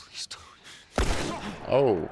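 A single pistol shot bangs.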